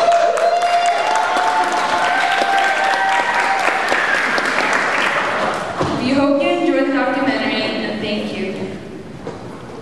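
A young woman speaks through a microphone in a large echoing hall.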